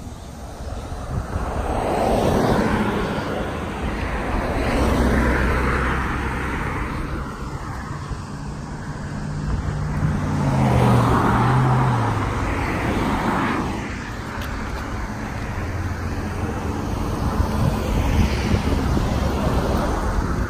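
Wind blows outdoors, rumbling.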